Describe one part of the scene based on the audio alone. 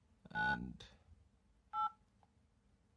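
A phone keypad beeps as numbers are tapped in.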